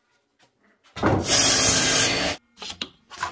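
A miter saw whines as it cuts through wood.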